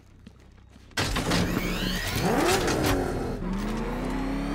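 A powerful car engine starts with a roar and revs.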